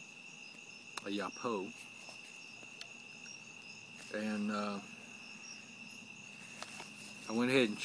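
A man blows a small hand call close by in short, wavering bursts.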